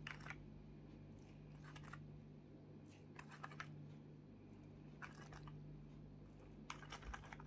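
A wooden stick scrapes and taps softly against a plastic mold.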